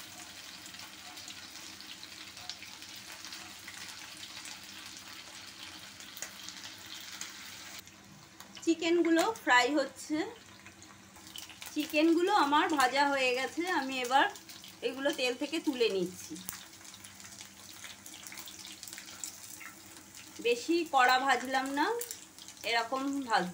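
Oil sizzles and crackles steadily as food fries in a pan.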